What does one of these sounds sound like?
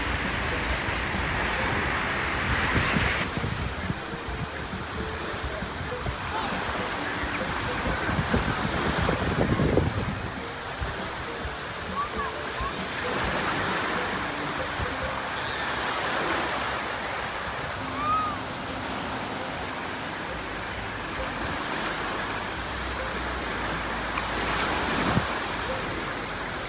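Small waves wash and break on the shore nearby.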